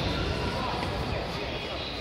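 A skipping rope swishes through the air.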